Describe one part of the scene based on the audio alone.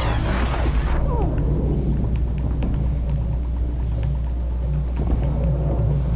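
Fire crackles and booms after a blast.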